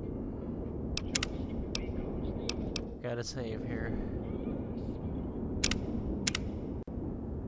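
Short interface clicks tick several times.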